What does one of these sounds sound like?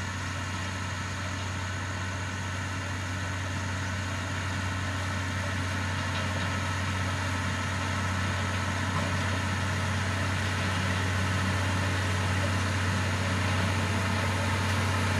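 A heavy diesel engine rumbles steadily and grows slowly louder as it approaches.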